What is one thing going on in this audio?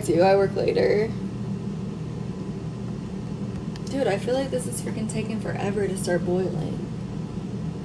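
A woman talks casually, close to the microphone.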